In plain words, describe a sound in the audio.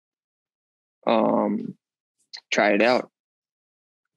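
A young man speaks into a close microphone in short bursts, with animation.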